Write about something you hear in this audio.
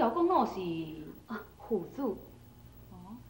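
A young woman asks a question in a lively voice.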